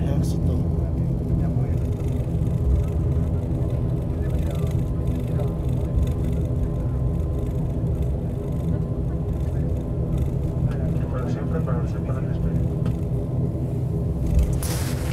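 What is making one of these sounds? Airliner wheels rumble over the taxiway.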